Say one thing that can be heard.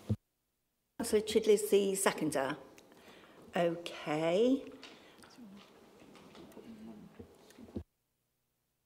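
An elderly woman speaks calmly into a microphone in a large hall.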